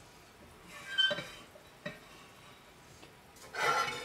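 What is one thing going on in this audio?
A metal lid clinks onto a pot.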